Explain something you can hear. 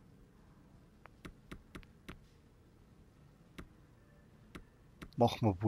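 Short electronic clicks sound as menu options are selected.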